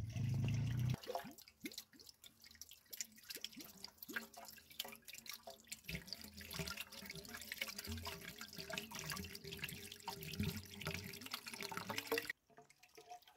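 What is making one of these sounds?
Water gushes from a pipe and splashes into a hollow bamboo tube.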